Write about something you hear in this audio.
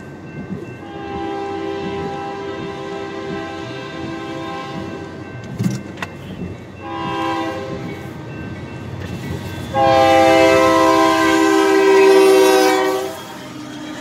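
A train horn blares in long, loud blasts.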